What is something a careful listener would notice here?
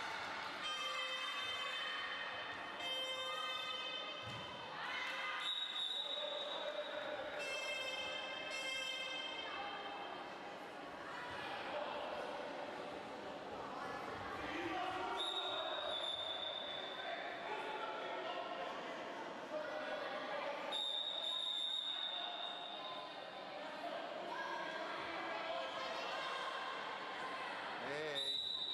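Young girls cheer and shout loudly in a large echoing hall.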